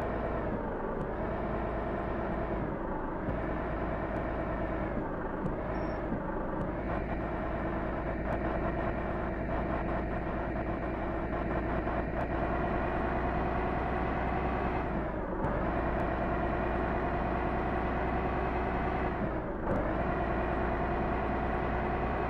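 A truck engine drones steadily, rising and falling in pitch as the gears change.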